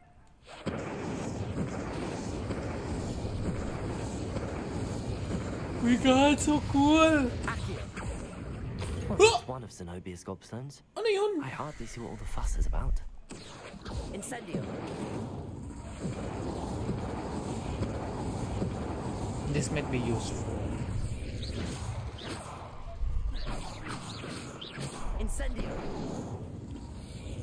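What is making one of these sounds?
Magic spells whoosh and burst.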